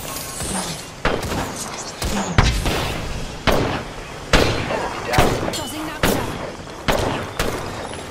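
Gunshots crack out in sharp, repeated bursts.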